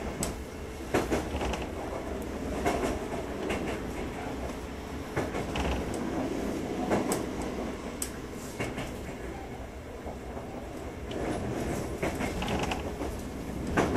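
A standing train hums low and steadily.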